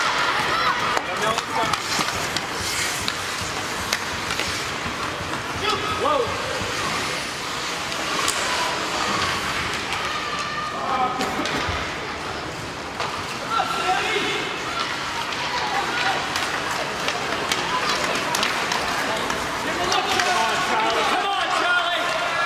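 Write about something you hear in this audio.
Spectators shout and cheer in an echoing rink.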